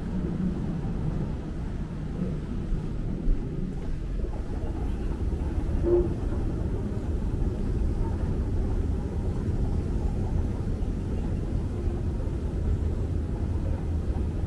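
A moving walkway hums and rumbles steadily in a large echoing hall.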